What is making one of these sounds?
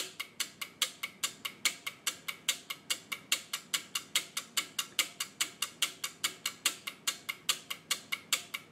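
Relays click rapidly in a steady rhythm.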